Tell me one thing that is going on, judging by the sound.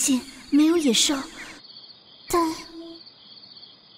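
A young girl speaks softly and anxiously.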